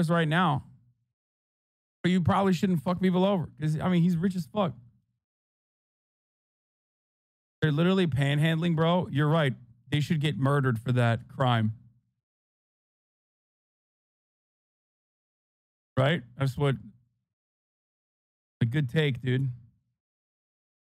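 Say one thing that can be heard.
A man speaks with animation close to a microphone, in bursts with pauses.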